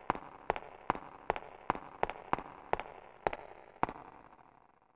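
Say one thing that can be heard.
Footsteps echo on a hard floor in a large hallway.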